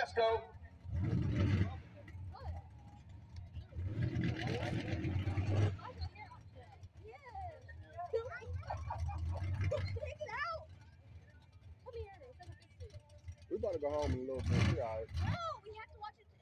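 A truck engine revs in bursts outdoors.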